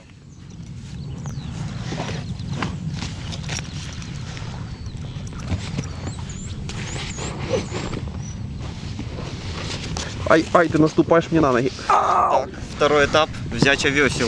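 An inflatable boat's rubber creaks and rustles as a man climbs in.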